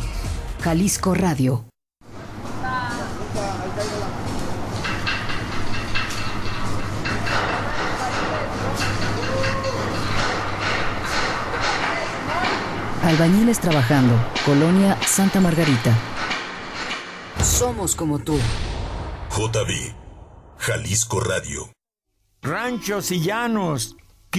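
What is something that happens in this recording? An elderly man speaks close into a microphone.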